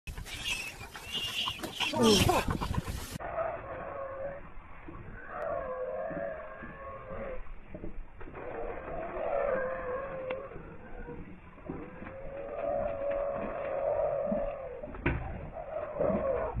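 Animals growl and snarl as they fight in the distance.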